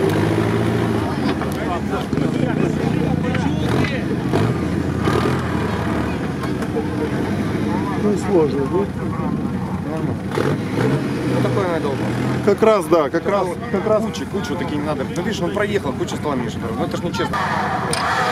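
An off-road truck engine roars and revs loudly.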